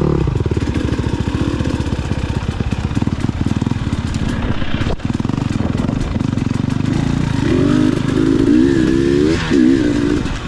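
Tyres crunch over a rocky dirt trail.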